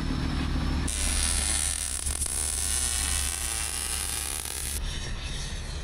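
Welding crackles and hisses.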